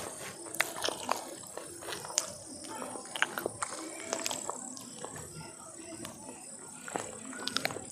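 A man chews food wetly and noisily, close by.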